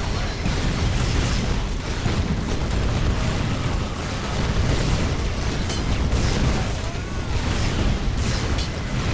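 Gunfire and explosions rattle and boom in a loud, constant battle.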